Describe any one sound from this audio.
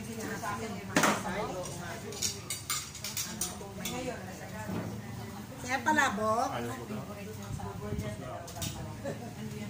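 Plates and cutlery clink.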